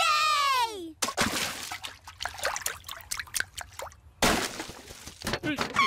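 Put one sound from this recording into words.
Water splashes and sloshes in a tub.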